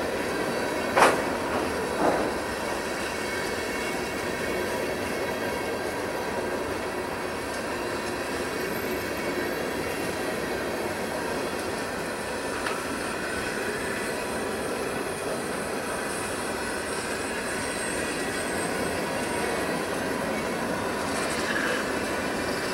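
Train wheels squeal and clank on the rails.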